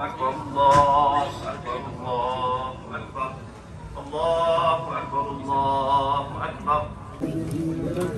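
A man chants in a long melodic voice through a loudspeaker in a large echoing hall.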